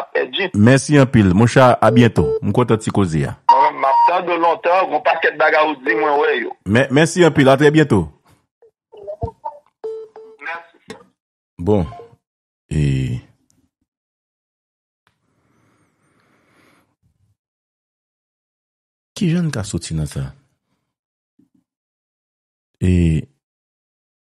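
A man speaks with animation over a phone line, in bursts with long pauses.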